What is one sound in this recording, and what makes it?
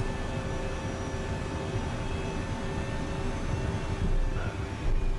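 Tyres rumble over the runway surface.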